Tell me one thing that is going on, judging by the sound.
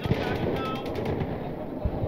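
A distant explosion booms and rumbles.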